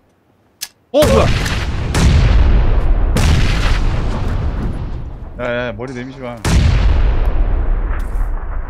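Loud explosions boom close by and rumble as they fade.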